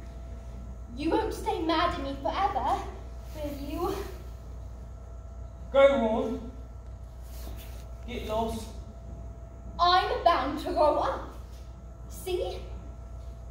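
A young woman speaks lines with feeling, heard from a distance in a large room.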